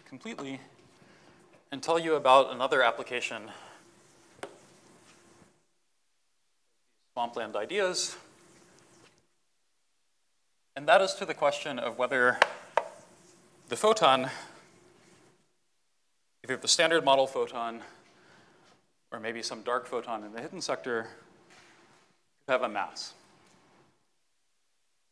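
A man speaks calmly through a microphone in a large hall, with pauses between phrases.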